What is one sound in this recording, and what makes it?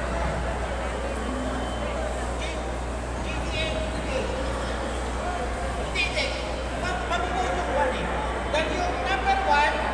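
A crowd of people chatters in a large indoor hall.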